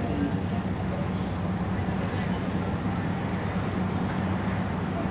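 Tyres roll on asphalt, heard from inside a bus.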